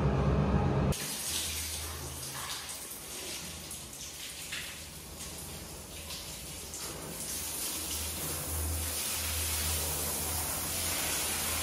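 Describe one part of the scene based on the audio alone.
A paint sprayer hisses steadily.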